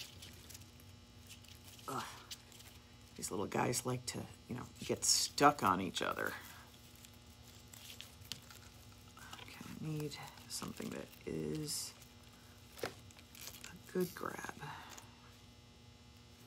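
Scissors snip through ribbon.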